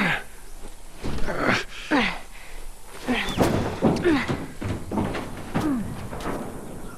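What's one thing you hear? A young girl grunts with effort while climbing.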